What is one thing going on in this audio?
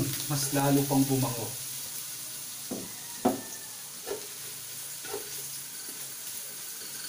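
A metal spatula scrapes and knocks against a frying pan.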